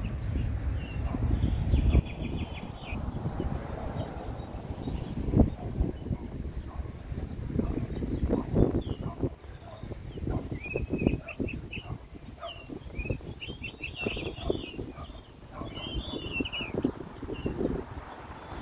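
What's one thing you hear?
Wind rustles through the leaves of a tree outdoors.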